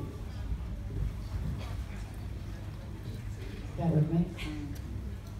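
A woman speaks calmly through a microphone in an echoing hall.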